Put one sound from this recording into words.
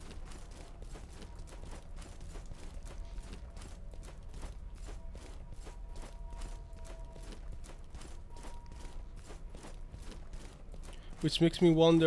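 Footsteps crunch quickly and steadily on rough rock.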